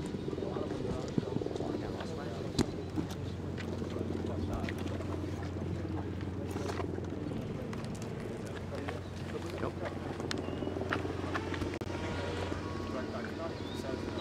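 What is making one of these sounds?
A crowd of men and women murmur and chatter close by.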